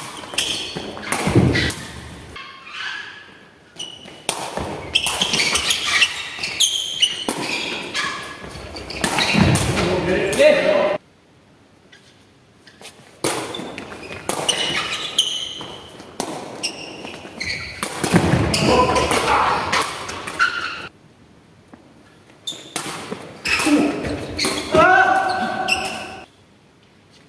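Men call out to each other across the hall.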